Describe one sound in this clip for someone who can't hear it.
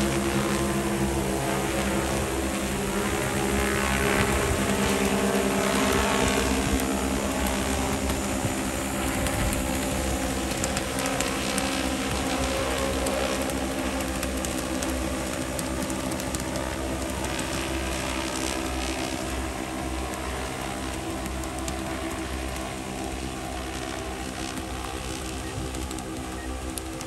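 A drone's propellers whir and hum steadily overhead, slowly fading as it drifts away.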